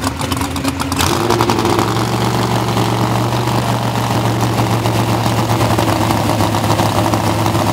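A drag racing car idles with a lumpy rumble.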